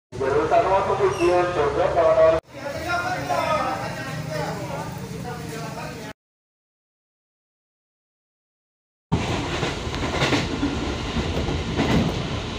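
A dense crowd murmurs and chatters nearby.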